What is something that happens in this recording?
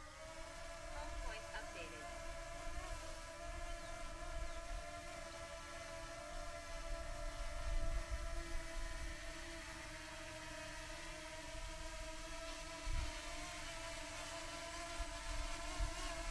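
A drone's propellers whine steadily nearby.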